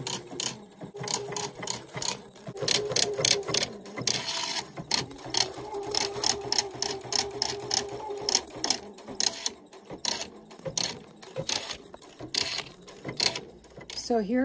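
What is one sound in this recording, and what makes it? An embroidery machine stitches with rapid, rattling clicks.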